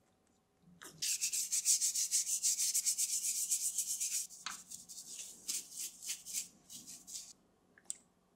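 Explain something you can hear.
A stiff brush scrubs rapidly against metal.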